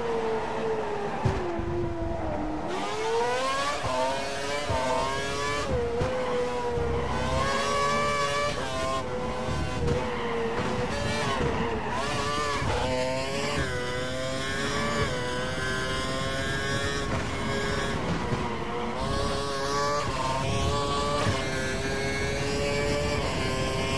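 A racing car engine screams, rising in pitch as it speeds up and dropping as it shifts gear and slows for corners.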